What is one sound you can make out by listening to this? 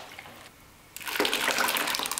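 Thick sauce plops and pours into water.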